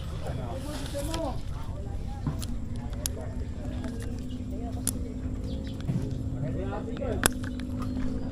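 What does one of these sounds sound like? A plastic water bottle clicks and knocks.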